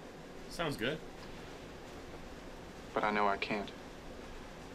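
A young man speaks briefly through a microphone.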